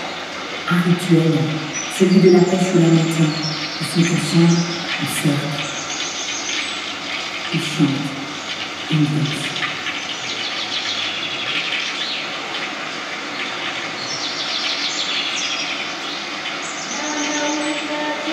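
A choir of young voices sings together in a large hall.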